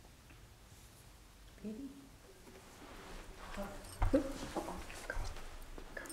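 An older woman laughs softly.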